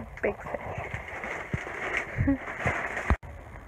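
Paper wrapping crinkles and rustles as it is handled.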